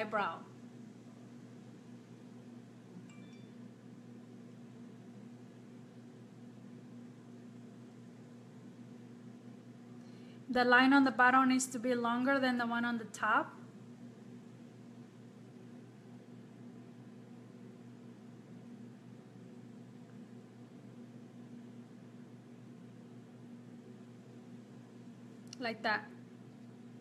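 A woman talks calmly close to the microphone.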